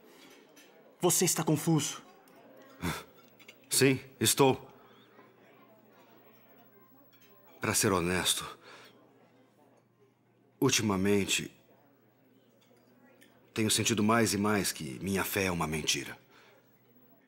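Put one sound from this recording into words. A second man answers calmly, close by.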